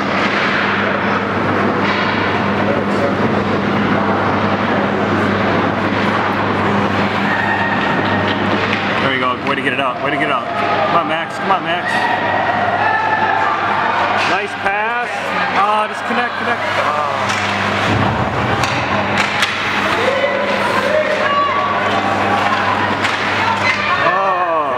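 Ice skates scrape across a rink.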